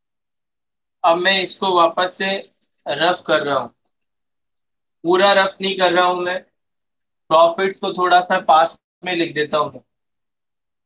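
A man speaks in short, clear bursts, close to the microphone.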